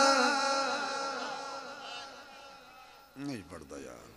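A man chants in a long, drawn-out voice through a microphone and loudspeakers, fading away.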